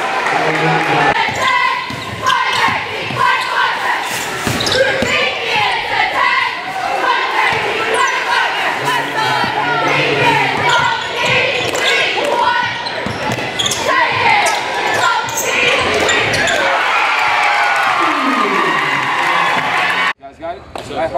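A crowd cheers in a large echoing gym.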